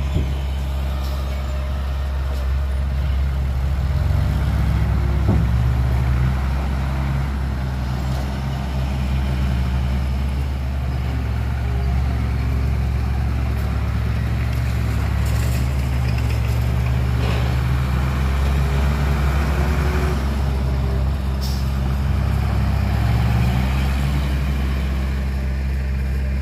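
A diesel truck engine rumbles steadily nearby.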